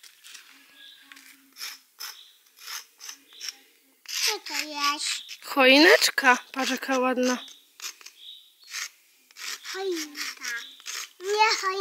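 Chalk scratches on stone paving.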